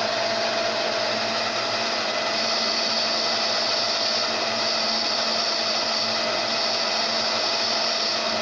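A cutting tool scrapes and hisses against spinning metal.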